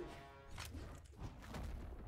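A fiery blast whooshes.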